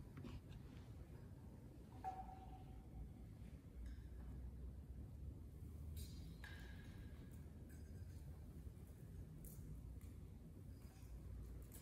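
A censer's metal chains clink softly.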